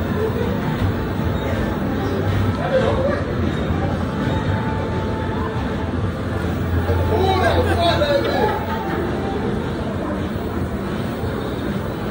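Arcade machines beep and play electronic music throughout a large room.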